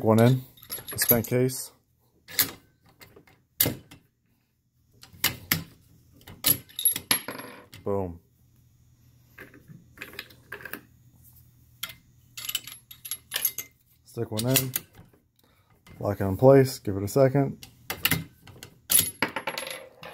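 A brass casing drops and clinks on a wooden floor.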